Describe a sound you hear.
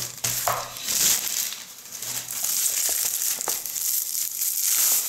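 Bubble wrap crinkles and rustles as hands handle it.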